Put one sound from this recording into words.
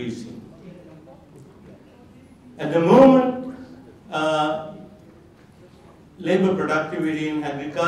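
An elderly man speaks calmly through a microphone in a large echoing hall, with long pauses.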